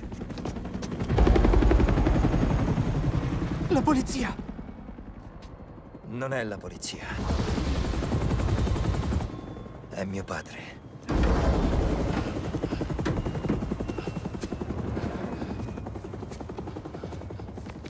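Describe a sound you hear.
A helicopter's rotor thumps and roars overhead.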